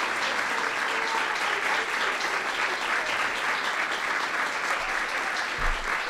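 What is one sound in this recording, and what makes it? A crowd applauds steadily in a large room.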